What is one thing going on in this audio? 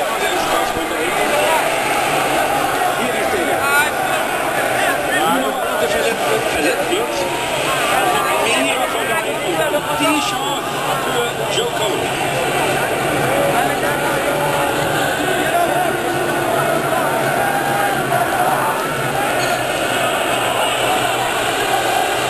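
A crowd cheers and shouts throughout.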